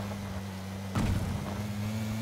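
A buggy thumps hard on landing from a bump.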